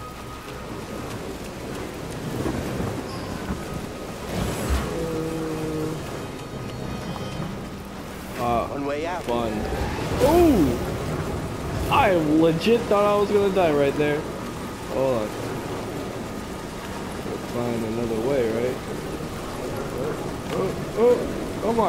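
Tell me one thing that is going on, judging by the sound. Heavy rain and wind roar outdoors.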